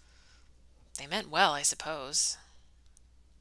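A young woman reads aloud calmly, close to a microphone.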